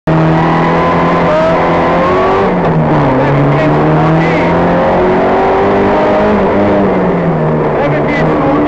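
A rally car engine roars and revs up and down close by.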